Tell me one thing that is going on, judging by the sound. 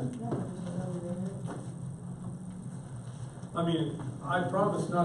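An older man speaks calmly and with pauses.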